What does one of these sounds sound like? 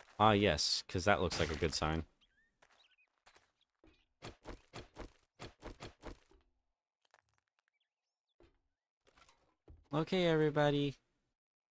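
A young man talks with animation close to a headset microphone.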